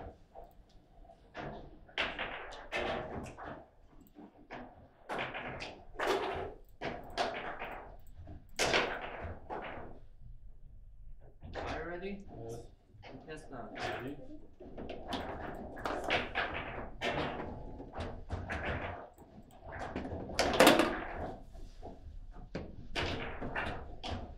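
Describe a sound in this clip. Plastic figures on metal rods strike a hard ball with sharp clacks.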